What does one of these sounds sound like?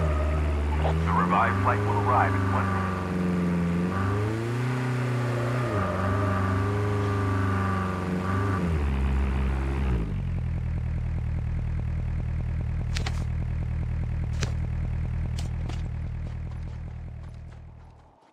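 A vehicle engine drones steadily and revs up and down.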